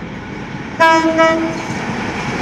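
A locomotive horn blares loudly.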